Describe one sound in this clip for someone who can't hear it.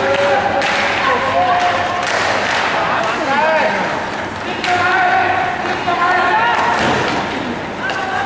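Young players shout and call out to each other in a large echoing rink.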